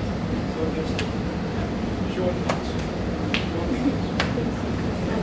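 A hand slaps sharply against a cloth jacket several times.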